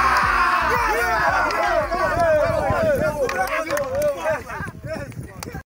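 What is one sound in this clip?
A group of young men chant and cheer loudly together.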